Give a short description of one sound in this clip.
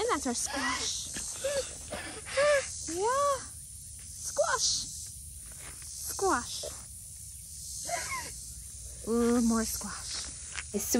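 A young girl talks and sings out in a high voice, close by.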